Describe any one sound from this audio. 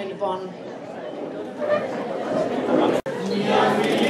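A young woman speaks into a microphone over a loudspeaker.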